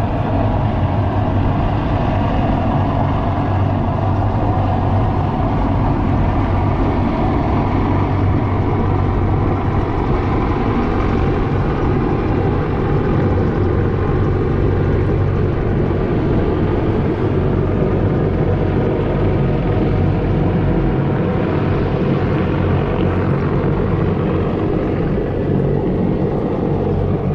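Wind blows strongly across open water.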